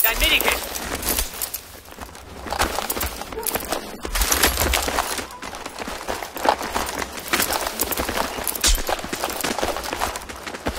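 Gunfire and explosions crack and boom repeatedly.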